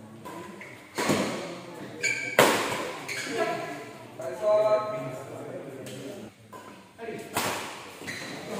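Rackets smack a shuttlecock back and forth in a large echoing hall.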